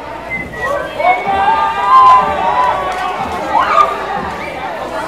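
Men and women cheer loudly.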